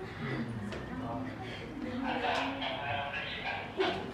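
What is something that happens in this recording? A group of women and men laugh and chatter.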